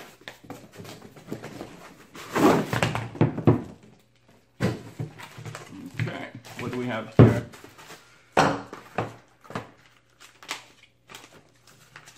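Cardboard boxes rustle and scrape as they are opened.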